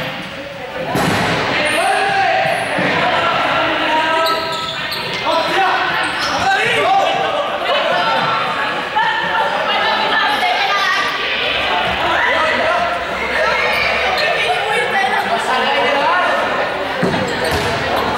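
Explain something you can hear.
A ball bounces on a hard floor.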